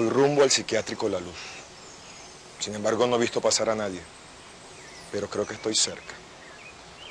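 A man speaks calmly into a handheld microphone, in short phrases with pauses.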